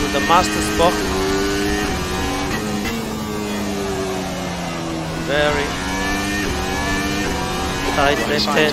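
A racing car engine drones and shifts pitch as it changes gear.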